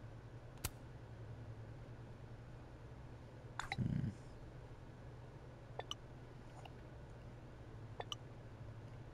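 Short message alert tones chime now and then.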